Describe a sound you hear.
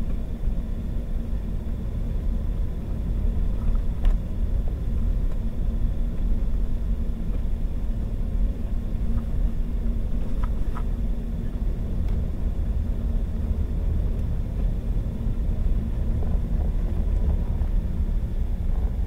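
Tyres crunch and rumble over packed snow.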